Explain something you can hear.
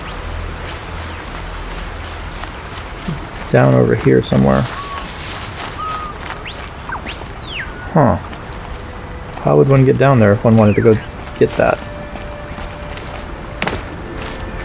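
Footsteps rustle through grass and undergrowth.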